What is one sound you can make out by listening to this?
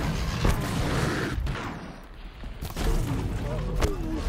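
A large mechanical creature clanks and thuds as it moves.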